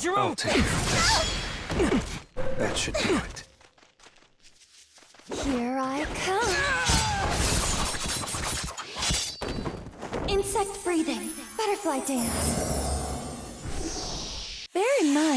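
Magical blasts whoosh and roar.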